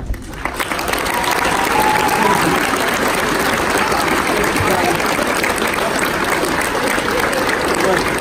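Young people shout and whoop with excitement.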